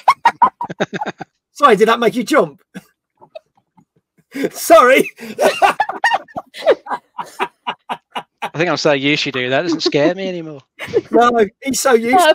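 A man laughs loudly through a microphone.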